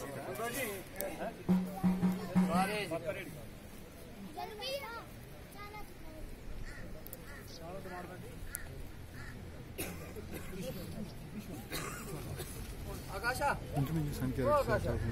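Several men talk with animation close by, outdoors.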